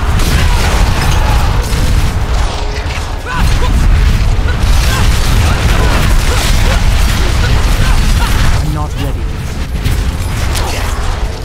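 Spells crackle and explode in quick bursts of combat.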